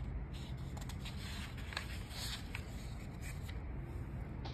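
Paper pages rustle as they are flipped.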